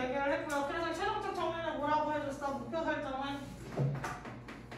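A young woman speaks in a drawn-out, sing-song voice nearby.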